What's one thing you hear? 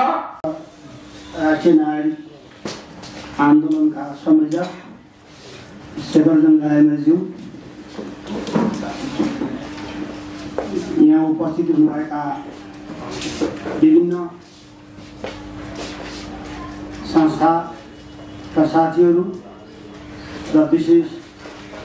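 A middle-aged man speaks slowly into a microphone, with pauses.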